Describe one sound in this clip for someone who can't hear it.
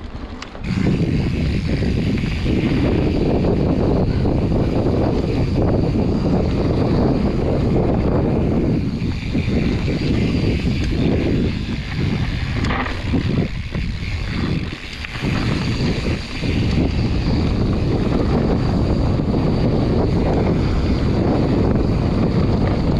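Mountain bike tyres crunch and rattle over a dirt trail.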